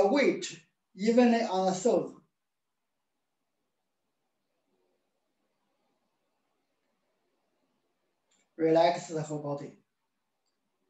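A middle-aged man speaks calmly in short phrases through a microphone.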